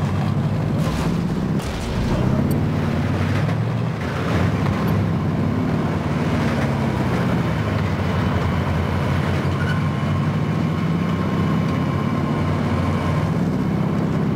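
A heavy truck engine rumbles steadily while driving.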